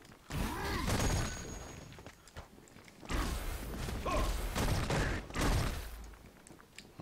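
Fireballs whoosh and blast with loud bursts.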